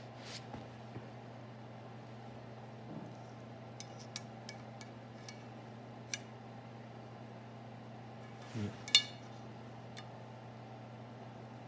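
Calipers slide and click softly.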